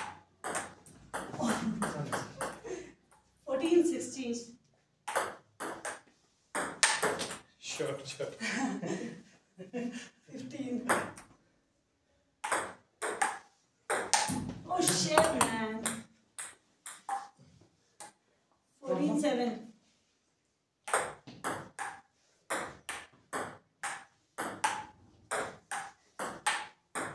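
A table tennis ball bounces and clicks off a table and paddles in quick rallies.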